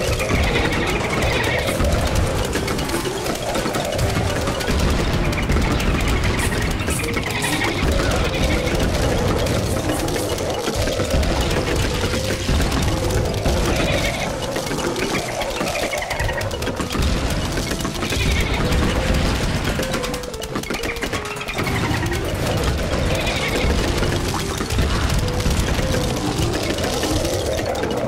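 Rapid popping shots fire continuously from a game's plants.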